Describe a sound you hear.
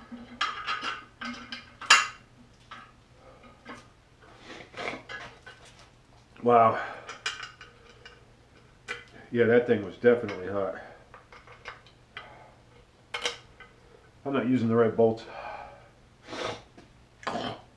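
Metal parts click and clatter in a man's hands.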